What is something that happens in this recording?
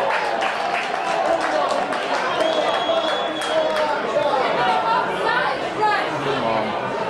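A crowd of spectators chatters and calls out in an open-air stadium.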